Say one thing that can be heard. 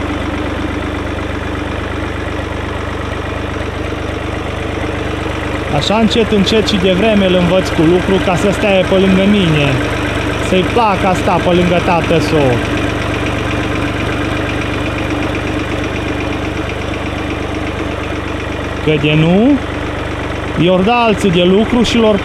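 A tractor engine idles with a steady low chugging.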